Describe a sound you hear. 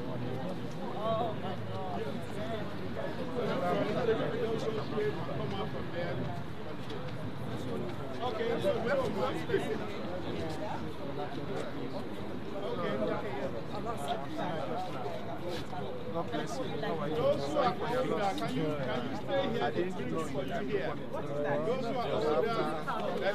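A crowd of men and women chat and murmur nearby outdoors.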